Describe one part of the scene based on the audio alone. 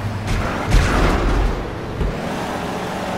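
A van thumps and bangs heavily over rough ground.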